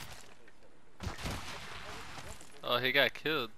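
Footsteps thud on dirt.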